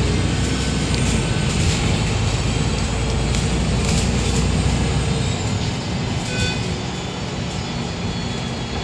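Rattles and knocks sound inside the moving bus.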